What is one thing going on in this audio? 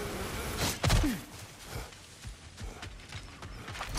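An armoured warrior runs over grass with heavy footsteps.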